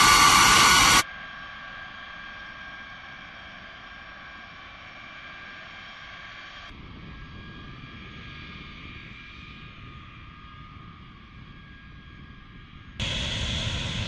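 A large jet aircraft rumbles with a distant engine whine.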